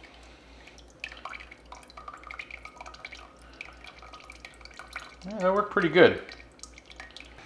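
Broth drips through a mesh strainer into a pot.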